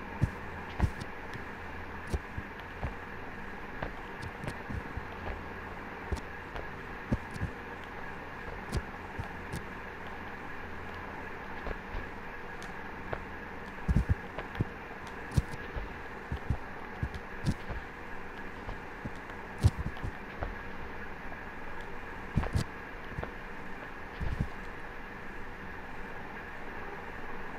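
Footsteps and hand grips thud softly on rock.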